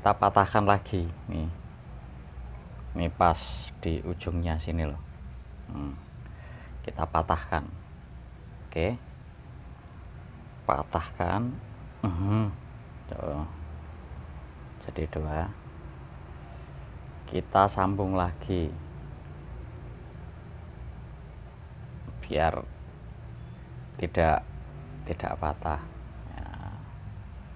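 A man talks calmly and close by, in short bursts.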